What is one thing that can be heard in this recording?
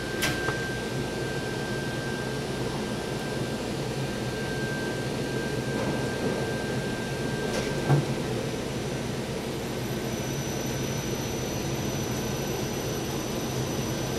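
An elevator motor hums steadily.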